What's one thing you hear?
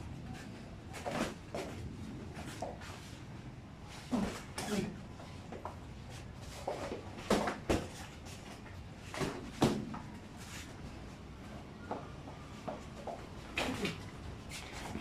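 Boxing gloves thud against a body and gloves in sharp, uneven bursts.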